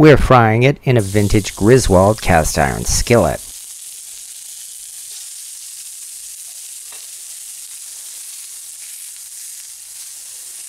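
Raw meat sizzles steadily in a hot pan.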